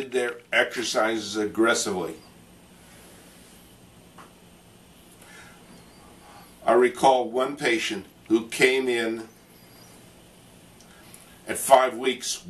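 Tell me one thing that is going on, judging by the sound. An elderly man speaks calmly and explains close by, pausing between phrases.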